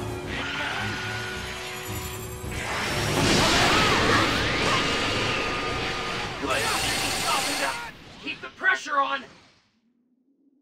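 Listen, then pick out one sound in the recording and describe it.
Energy blasts whoosh and crash loudly in a fast fight.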